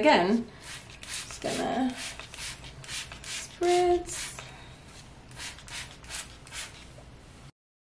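A spray bottle hisses in short bursts.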